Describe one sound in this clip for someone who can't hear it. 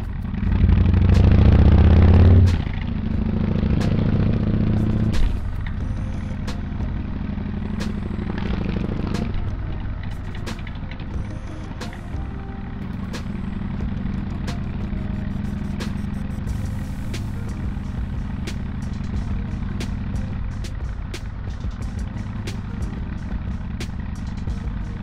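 A motorcycle engine hums steadily as it rides along a road.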